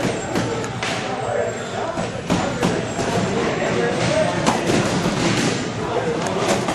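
Boxing gloves thud as punches land.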